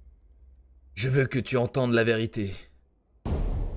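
A man speaks close to a microphone.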